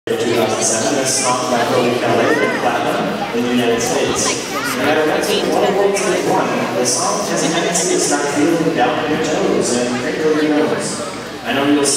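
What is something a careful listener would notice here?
Upbeat music with singing plays over loudspeakers in a large echoing hall.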